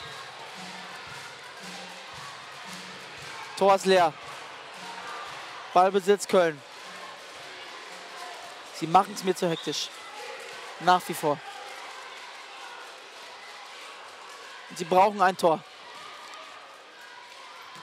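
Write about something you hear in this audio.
A large indoor crowd murmurs and cheers, echoing in a hall.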